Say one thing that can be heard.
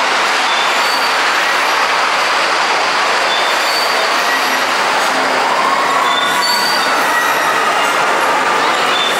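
A swing ride creaks as it swings back and forth.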